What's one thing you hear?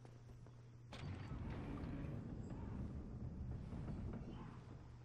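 A heavy wooden door grinds and rumbles as it is pushed open.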